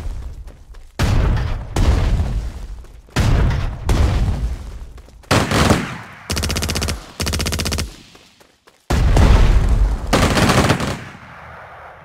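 Explosions boom in short, heavy bursts.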